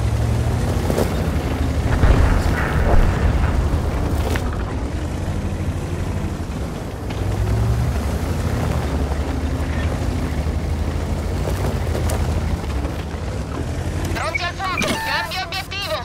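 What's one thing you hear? Cannon shots boom with sharp blasts.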